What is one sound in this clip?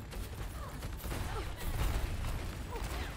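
Explosions boom with a low rumble.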